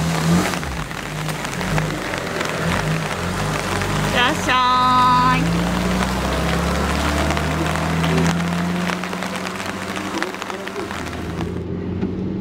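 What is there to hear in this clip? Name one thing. A small car engine idles and revs as the car pulls away outdoors.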